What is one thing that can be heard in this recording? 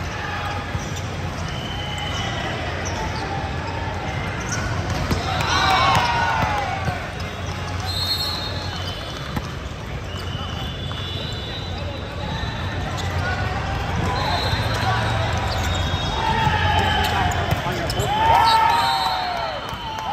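A crowd of people chatters in a large echoing hall.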